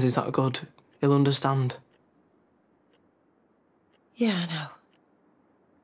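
A teenage boy speaks briefly, close by.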